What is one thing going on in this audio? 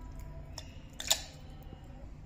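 Dry oat flakes tip into a metal jug.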